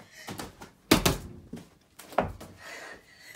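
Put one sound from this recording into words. Feet thump heavily onto a padded mat.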